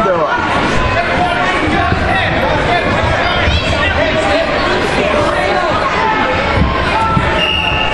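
A crowd of men and women chatters and calls out in a large echoing hall.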